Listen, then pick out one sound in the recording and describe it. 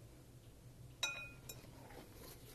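A glass bowl rings with a short clink.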